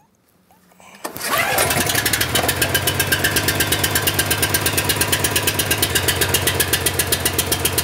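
A small petrol engine starts up and runs with a loud, steady, fast chugging close by.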